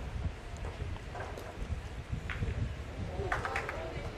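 A metal boule lands and clacks against other boules.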